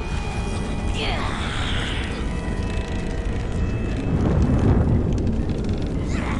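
Flames roar and whoosh in a deep burst.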